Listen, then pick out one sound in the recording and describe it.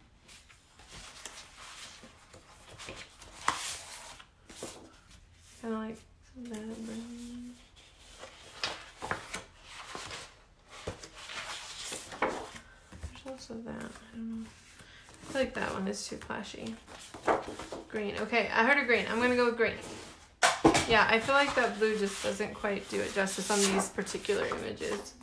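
Sheets of paper rustle and slide as they are shuffled by hand.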